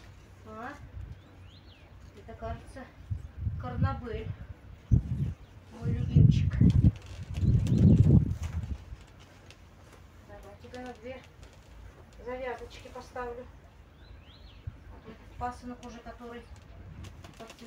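Leaves rustle as plants are handled.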